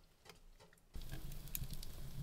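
A fire crackles and pops.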